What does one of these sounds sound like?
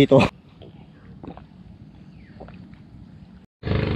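A man gulps water from a plastic bottle.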